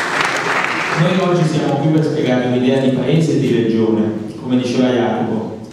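A young man speaks into a microphone through loudspeakers in an echoing hall.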